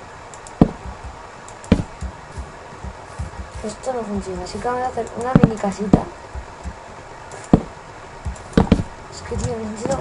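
Wooden blocks thud as they are placed.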